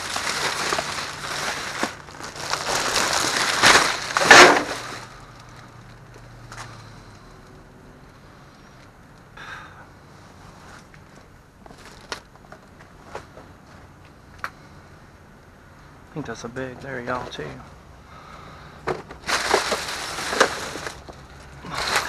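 Plastic garbage bags rustle and crinkle as they are handled.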